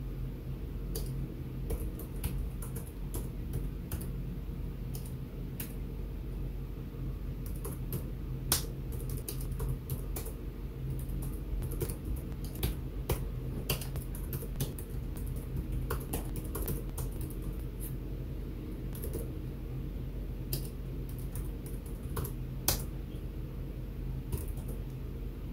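Keys on a keyboard click in short bursts of typing.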